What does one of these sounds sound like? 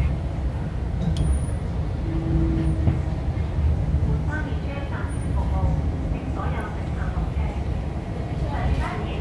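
A train rumbles steadily as it pulls away.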